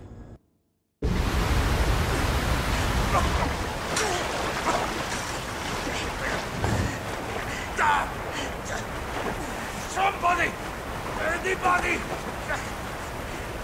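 Water gushes and splashes loudly.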